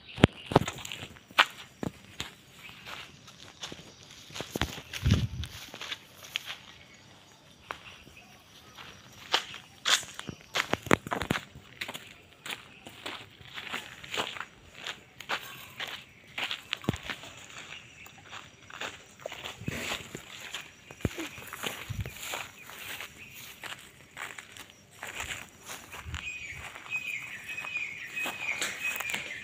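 Footsteps swish through tall dry grass close by.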